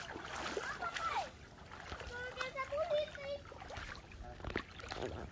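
A boy wades through shallow water with splashing steps.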